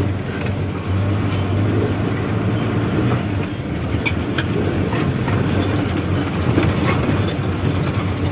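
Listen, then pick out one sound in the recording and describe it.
A heavy vehicle's diesel engine rumbles steadily from inside the cab.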